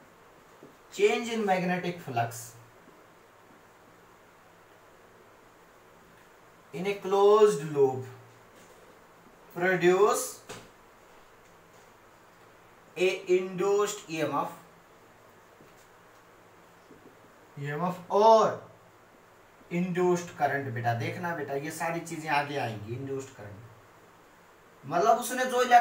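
A young man speaks calmly and clearly, close by, in short bursts with pauses.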